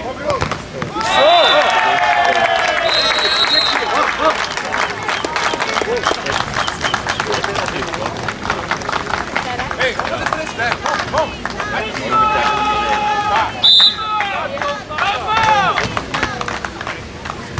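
A crowd cheers and claps outdoors.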